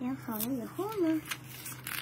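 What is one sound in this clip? A plastic sheet crinkles.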